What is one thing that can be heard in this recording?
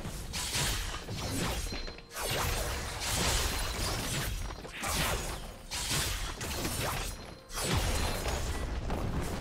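Weapons clash and hit during a game fight.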